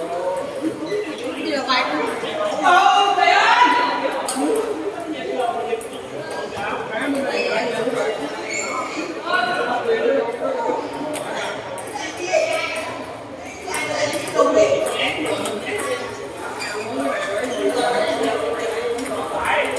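Many men and women chatter and call out in a large echoing hall.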